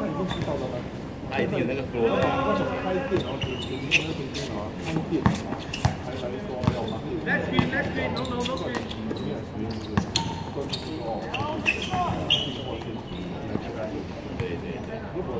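A basketball bounces on a hard court.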